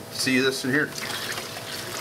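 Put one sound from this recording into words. Water pours from a filter box into a bucket.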